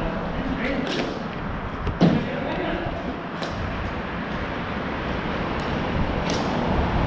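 Hockey sticks clack sharply against a ball and the floor.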